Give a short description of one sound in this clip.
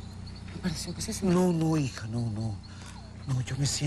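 A woman speaks in a low, tense voice nearby.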